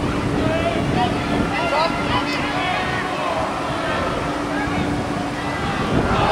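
A large crowd in a stadium cheers and shouts outdoors.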